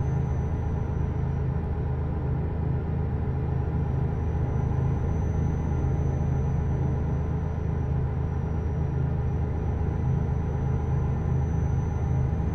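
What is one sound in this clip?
Tyres roll on a snowy road.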